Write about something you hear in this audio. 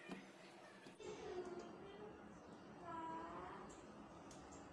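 Oil pours and trickles into a pan.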